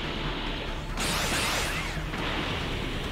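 A loud whoosh rushes past as a character dashes through the air.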